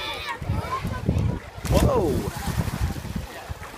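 A swimmer splashes into a pool of water.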